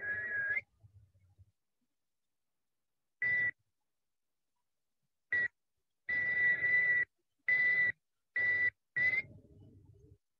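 An elderly man plays short, held notes on a harmonica.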